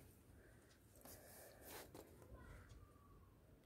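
A hand brushes softly over cloth.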